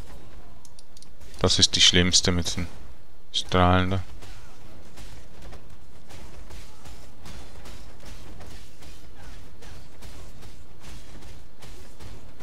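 Magic blasts crackle and burst in quick succession.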